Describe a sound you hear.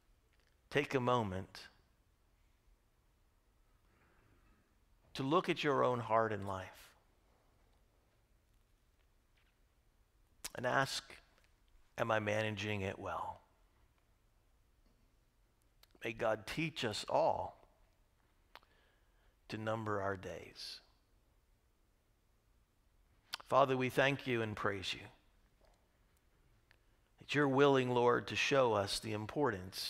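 A middle-aged man speaks calmly through a microphone in a large echoing hall, pausing often between phrases.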